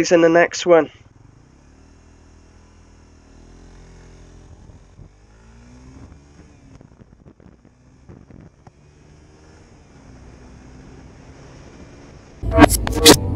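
A motorcycle engine hums and revs, rising and falling in pitch.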